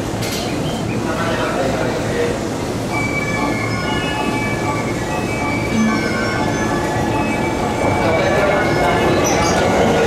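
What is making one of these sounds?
Train brakes squeal in high, thin tones.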